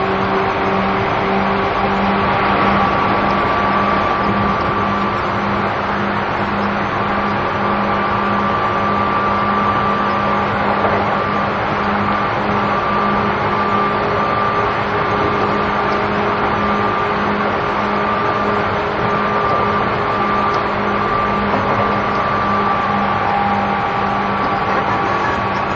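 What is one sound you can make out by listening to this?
A stopped electric train hums steadily at close range.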